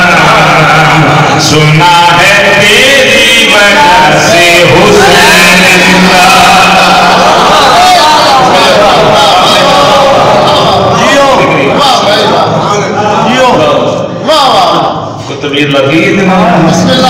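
A man speaks forcefully and with passion through a loud microphone and loudspeakers in an echoing room.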